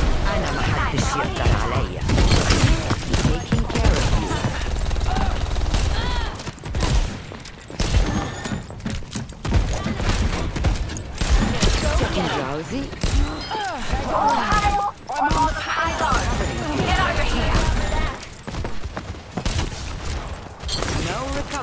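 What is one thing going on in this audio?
Rifle shots crack out in quick bursts.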